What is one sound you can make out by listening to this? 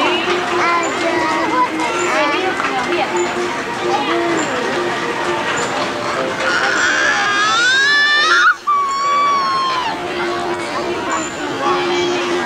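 A carousel organ plays a bouncy tune.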